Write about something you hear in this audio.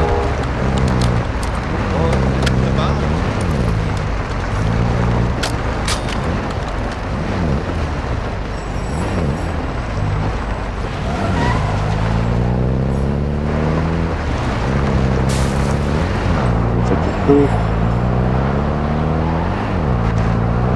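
A vehicle engine roars steadily and revs up and down as it drives.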